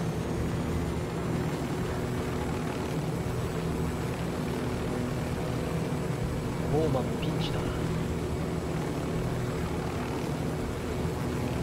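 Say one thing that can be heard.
A helicopter's rotor thumps steadily and its engine drones close by.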